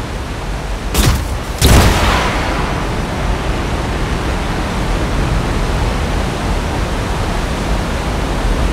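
A jet thruster bursts on with a loud roar and keeps rushing.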